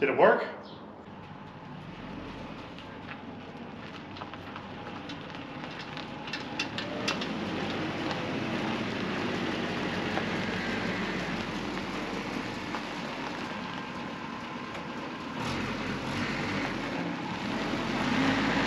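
A truck engine runs and rumbles as it drives slowly closer outdoors.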